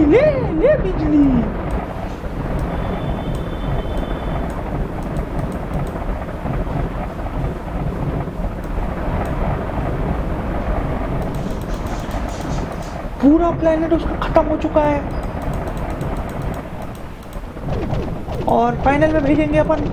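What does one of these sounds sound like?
Explosions rumble and crackle steadily.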